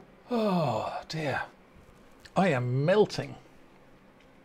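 A middle-aged man speaks with exasperation, close to a microphone.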